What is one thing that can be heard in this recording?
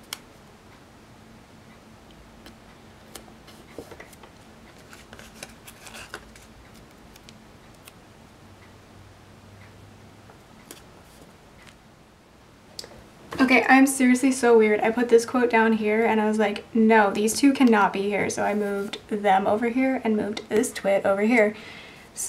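Fingertips rub and tap on paper pages.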